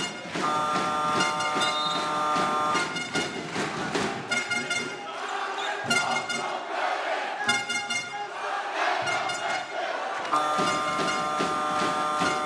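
A large crowd cheers in an echoing hall.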